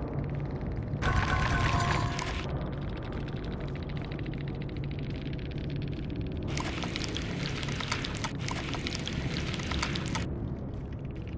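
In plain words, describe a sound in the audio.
Bright chimes ring out as points are tallied.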